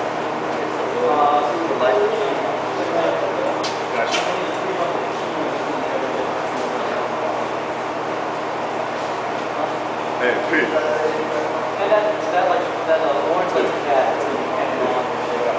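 A man talks nearby in a low voice.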